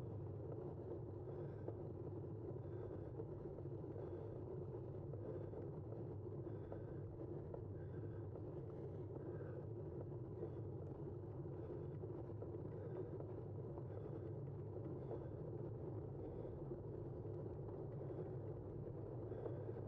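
Tyres hum steadily on a paved road.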